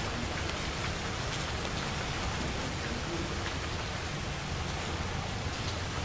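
Rain falls steadily on leaves outdoors.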